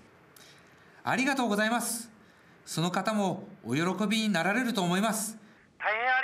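A man speaks politely into a phone, close by.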